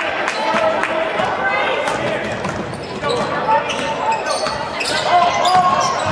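A basketball thuds as it bounces on a wooden floor.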